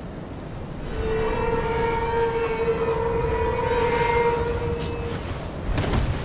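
An iron gate creaks open.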